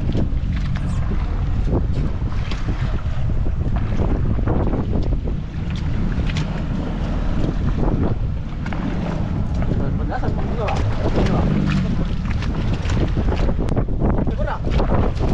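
A fish splashes and thrashes at the surface.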